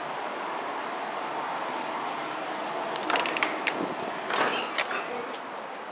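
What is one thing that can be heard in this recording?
A glass door swings open and rattles.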